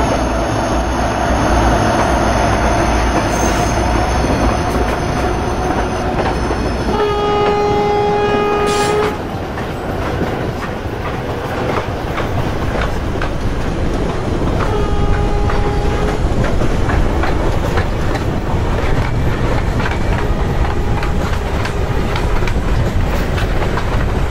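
A train rumbles steadily past close by.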